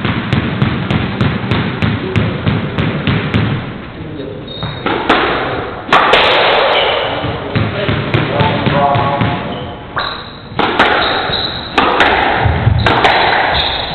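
A squash ball smacks sharply against rackets and walls in an echoing court.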